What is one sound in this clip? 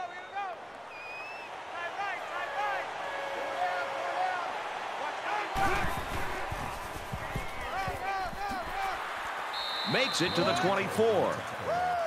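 A stadium crowd cheers.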